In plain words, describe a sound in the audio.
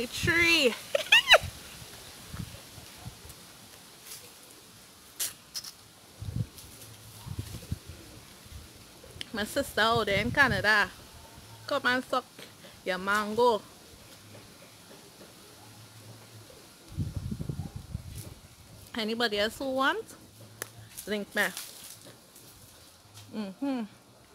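A woman bites and chews juicy fruit.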